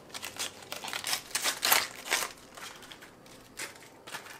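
Crisp cabbage leaves are snapped and peeled off a head.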